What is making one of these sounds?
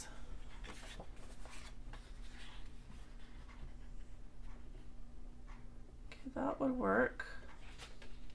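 Paper rustles as cards are picked up and handled.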